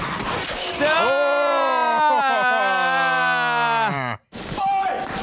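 A man in his thirties shouts in excitement close to a microphone.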